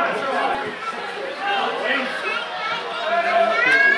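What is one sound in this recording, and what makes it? A crowd of spectators chatters and cheers.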